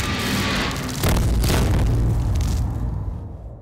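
A man slides and crashes across ice.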